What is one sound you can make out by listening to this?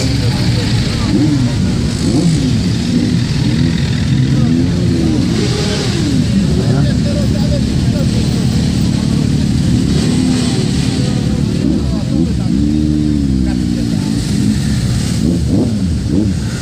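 Motorcycle engines rev up with rising and falling roars.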